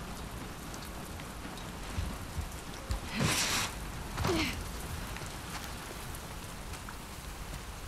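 Footsteps tread on wet ground.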